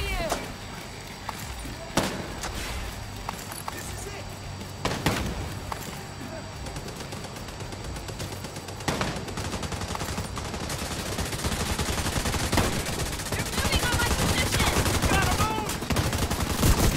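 Guns fire in rapid bursts nearby.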